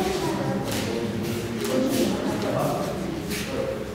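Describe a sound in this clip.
A young boy speaks softly nearby.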